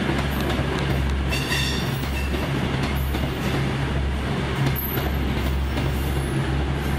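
An electric express train rumbles past on the rails.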